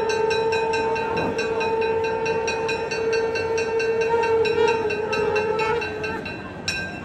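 Small bells ring rapidly and steadily.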